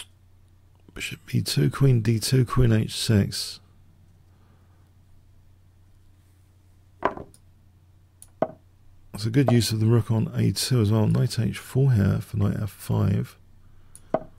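A middle-aged man talks calmly into a close microphone, in short bursts.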